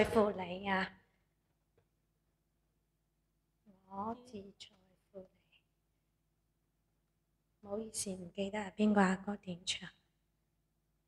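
A woman speaks calmly into a close microphone, in short phrases with pauses.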